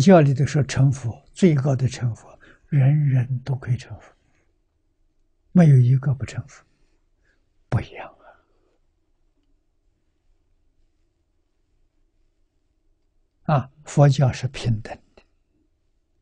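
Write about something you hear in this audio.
An elderly man speaks calmly and closely, in short phrases with long pauses.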